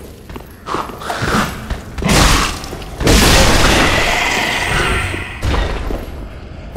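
A sword slashes and strikes with loud impacts.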